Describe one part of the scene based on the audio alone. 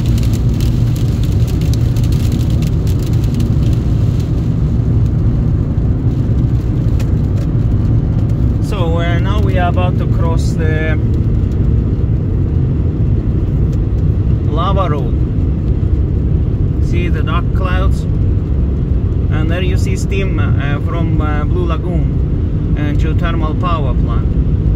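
A car's tyres roar steadily on a wet road from inside the car.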